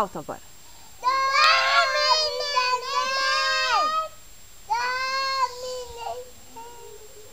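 A young girl sings in a high voice close by.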